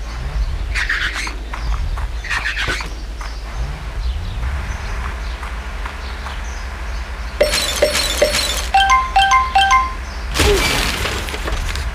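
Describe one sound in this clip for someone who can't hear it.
A toy police truck's engine hums steadily.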